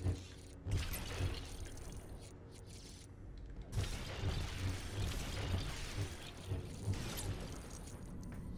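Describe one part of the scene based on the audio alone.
Toy bricks smash apart with clattering crashes.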